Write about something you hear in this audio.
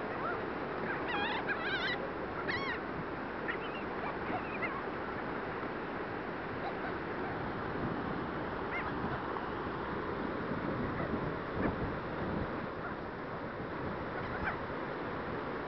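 Seagulls squawk and cry close by.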